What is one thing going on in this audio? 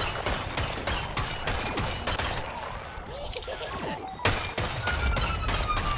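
Explosions burst close by.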